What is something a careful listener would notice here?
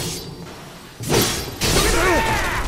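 A burst of crackling energy explodes.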